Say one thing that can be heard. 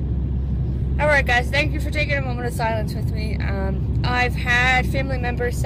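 A young woman talks calmly, close to the microphone.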